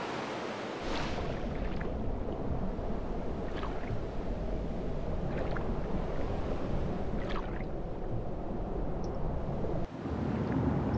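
Waves wash and swirl on open sea.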